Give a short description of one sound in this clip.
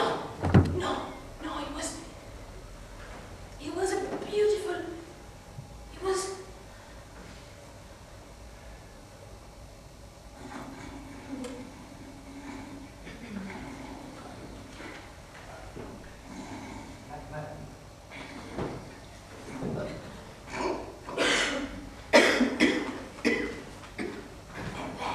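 A man speaks with feeling, heard from a distance in a room with some echo.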